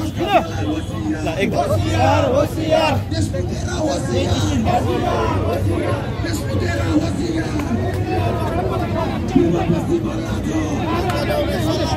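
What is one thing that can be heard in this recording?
A crowd of men chants and shouts loudly outdoors.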